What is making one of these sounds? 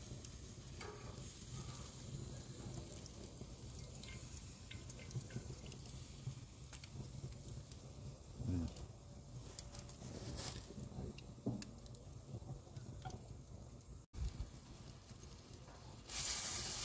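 Fat drips and sizzles onto hot coals.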